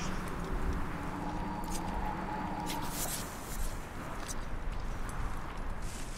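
Footsteps crunch quickly on rough ground.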